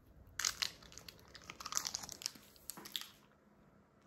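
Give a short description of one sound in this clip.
A small wrapped candy drops onto a hard table.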